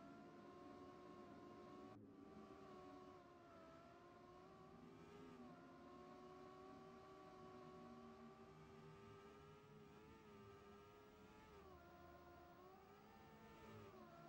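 A racing car engine whines steadily, its pitch rising and falling with speed.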